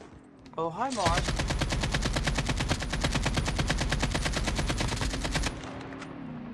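An assault rifle fires in rapid automatic bursts.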